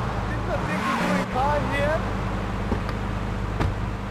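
Car tyres screech as the car brakes to a stop.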